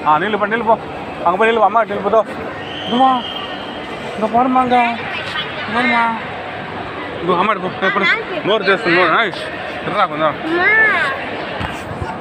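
A child talks and calls out excitedly close by.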